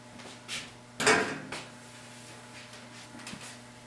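A chair creaks as a man sits down.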